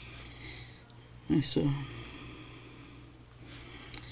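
Pencils clatter as one is put down and another picked up.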